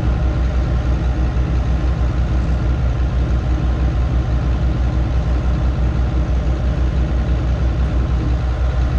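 An engine idles nearby with a steady, low, rhythmic throb.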